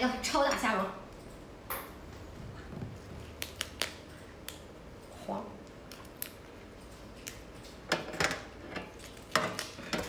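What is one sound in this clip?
Shrimp shells crack and crunch as they are pulled apart.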